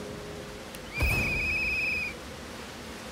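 A magic spell bursts with a whoosh and a warbling chime.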